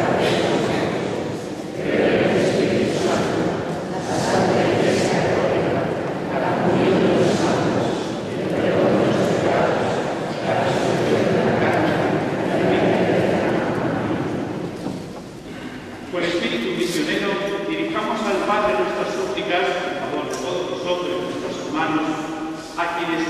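A crowd of men and women sings together in a large echoing hall.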